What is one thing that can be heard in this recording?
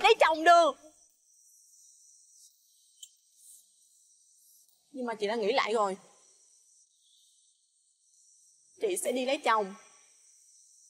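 A young woman speaks up close, upset and pleading.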